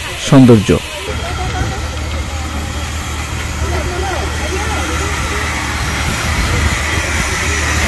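A steam locomotive idles with a steady low rumble and hiss.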